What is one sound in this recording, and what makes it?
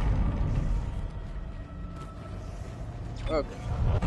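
Heavy metal footsteps clank on a hard floor.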